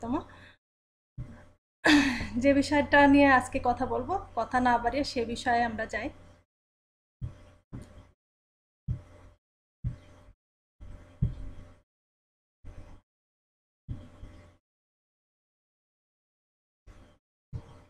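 A woman speaks calmly and closely into a microphone, in short bursts with pauses.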